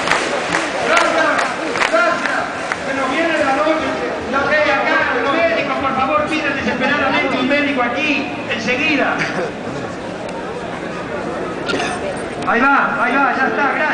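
Men and women in a crowd shout and cheer.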